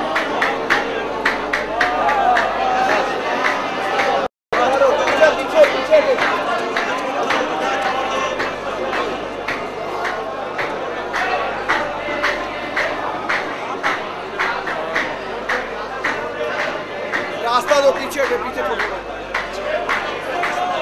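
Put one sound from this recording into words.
A large crowd of men talks and calls out all around, close by.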